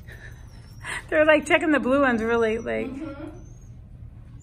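A woman talks in a high, excited voice close by.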